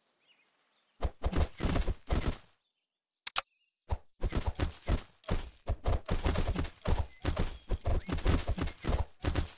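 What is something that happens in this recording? Rapid game sound effects of clashing and thumping play in quick bursts.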